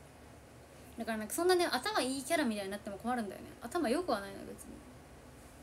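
A young woman speaks calmly and close to a microphone.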